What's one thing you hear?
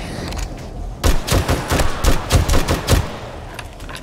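A rifle fires several quick shots in a row.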